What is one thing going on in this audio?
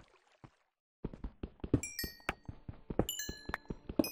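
A pickaxe chips rapidly at stone.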